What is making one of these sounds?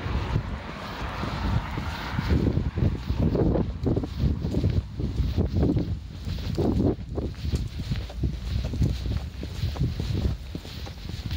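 Footsteps walk on paving stones.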